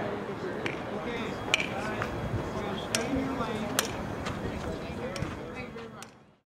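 A crowd chatters outdoors in the distance.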